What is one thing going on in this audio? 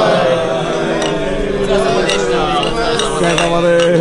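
Glass beer mugs clink together.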